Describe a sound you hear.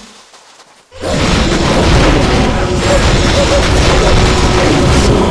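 Fire bursts with a roaring whoosh.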